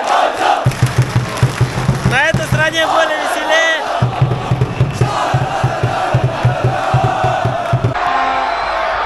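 A crowd claps in rhythm.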